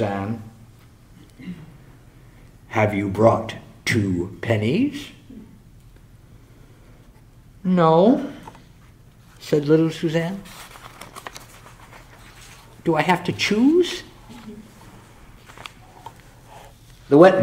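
A middle-aged man reads aloud calmly into a microphone, with pauses between phrases.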